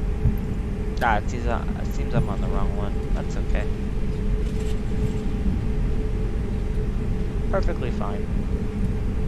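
A young man speaks briefly and casually into a microphone.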